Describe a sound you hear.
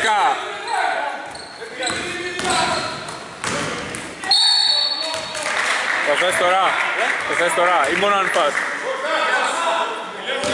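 Sneakers squeak on a hard court in an echoing hall.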